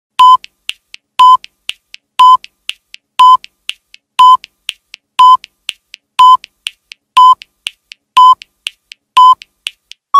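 A countdown timer beeps once every second, with quieter ticks in between.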